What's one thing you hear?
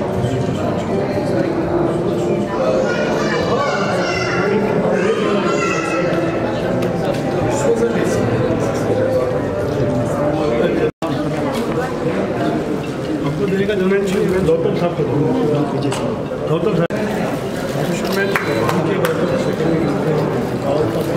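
A crowd of men and women chatters in the background.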